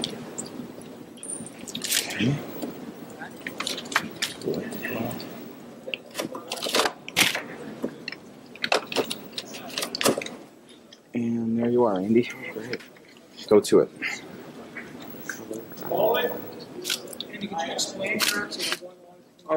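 A man talks casually through a microphone.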